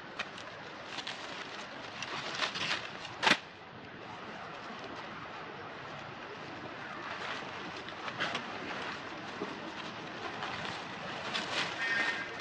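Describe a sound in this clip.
Dry leaves rustle and crackle as monkeys move on the ground.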